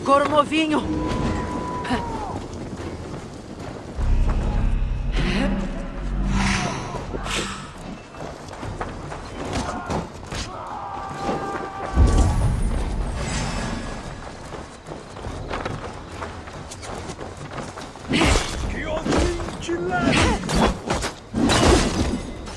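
Blades clash and thud as several fighters battle.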